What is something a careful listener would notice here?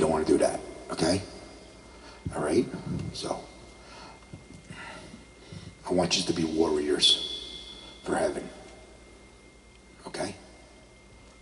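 A man speaks calmly into a microphone, heard close up, with pauses.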